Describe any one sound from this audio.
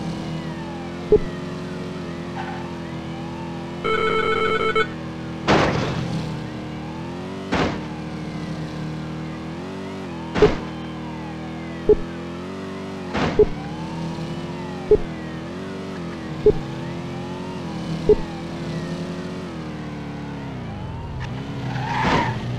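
A car engine roars steadily at high revs, its pitch shifting with gear changes.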